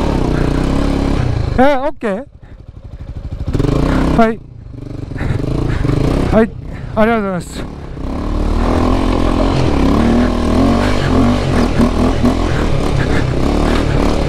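A motorcycle engine idles and revs up close.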